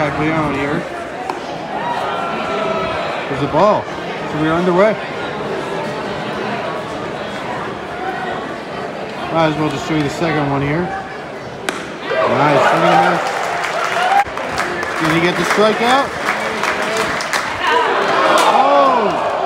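A crowd murmurs and chatters outdoors in a large stadium.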